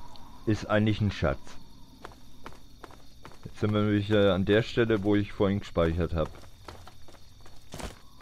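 Footsteps crunch over gravel and rubble.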